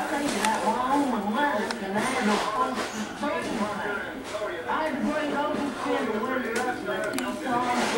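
A man talks calmly through a small television loudspeaker.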